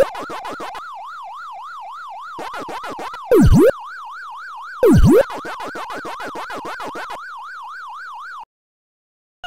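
A warbling electronic siren tone loops steadily in an arcade game.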